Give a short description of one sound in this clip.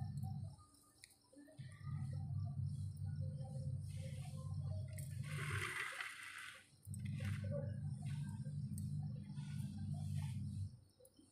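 A hand smears a damp paste across a stone surface with soft scraping.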